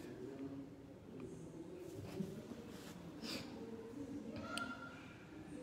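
A young man speaks softly into a microphone.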